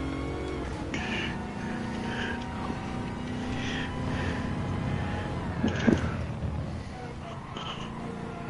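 A car engine roars steadily, rising in pitch and then dropping as it slows.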